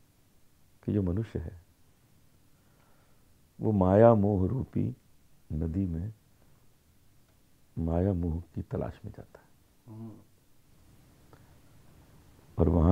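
A middle-aged man speaks calmly and with pauses, close to a microphone.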